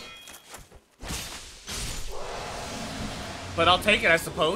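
A magic blast bursts with a rushing hiss.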